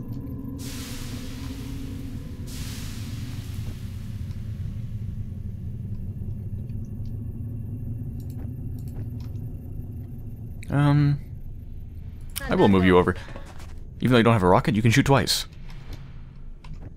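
A low, steady electric hum drones from a glowing portal.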